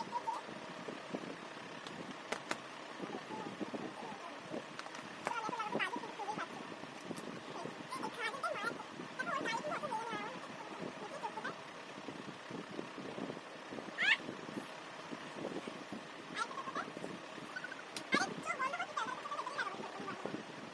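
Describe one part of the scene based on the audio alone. Two girls talk with animation close by.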